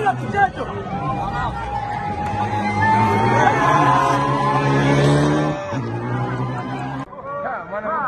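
A rally car engine roars loudly.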